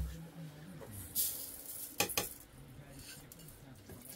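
A metal spoon scrapes inside a metal bowl.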